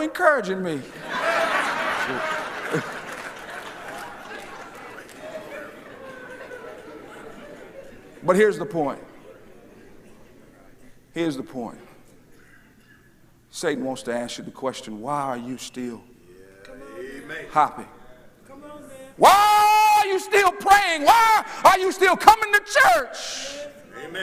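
A man preaches with animation through a microphone, echoing in a large hall.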